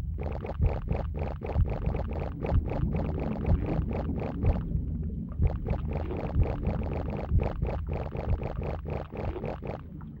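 Quick running footsteps patter on hard ground.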